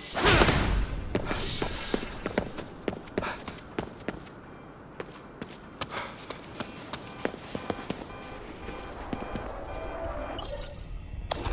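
Footsteps tap quickly on wet pavement.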